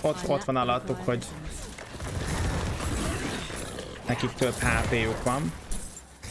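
Fighting sounds and magic effects from a video game crash and whoosh.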